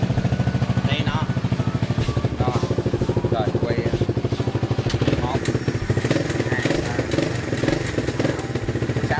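A motorcycle engine idles with a fast, throbbing putter close by.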